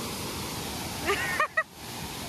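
A young woman laughs briefly.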